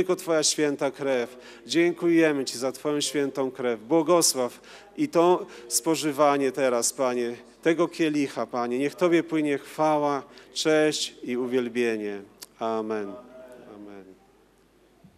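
A young man prays aloud with fervour through a microphone in an echoing hall.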